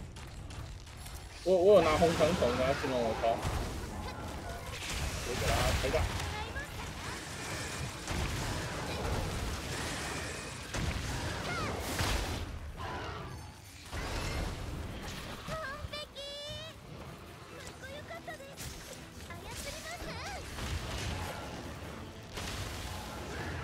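Blades strike a large creature with sharp, repeated hits.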